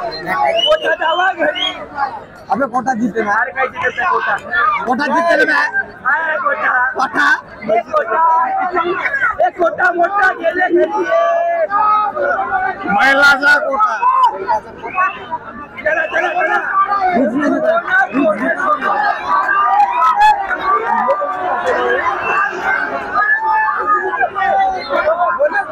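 A large crowd cheers and chatters in a big echoing hall.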